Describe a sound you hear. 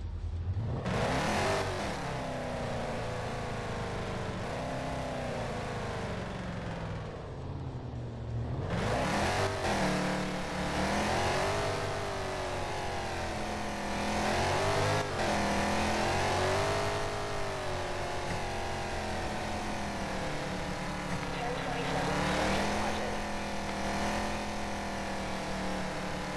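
A car engine hums as the car accelerates.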